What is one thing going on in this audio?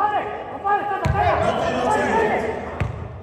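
A basketball thuds on the floor.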